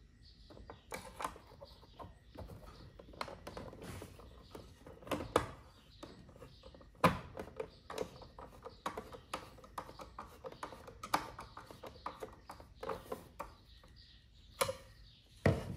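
A screwdriver clicks and scrapes against a plastic motor housing.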